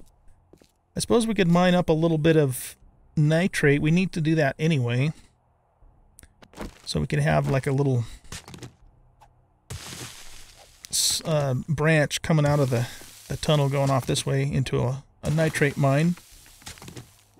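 A man talks with animation through a close microphone.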